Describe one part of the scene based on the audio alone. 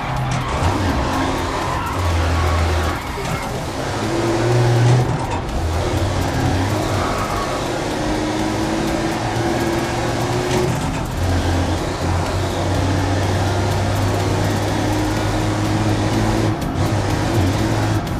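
A racing car engine roars loudly, revving up and dropping as gears shift.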